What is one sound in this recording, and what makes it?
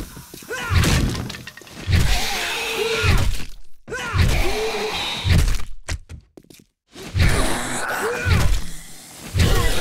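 Blows thud against a snarling zombie.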